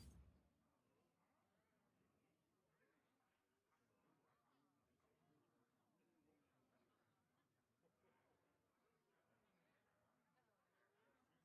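A man talks quietly into a microphone.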